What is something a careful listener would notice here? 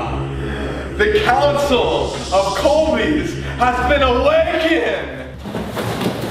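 A young man speaks loudly and with animation, close by.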